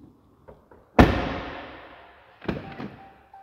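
A vehicle door slams shut with a ringing echo.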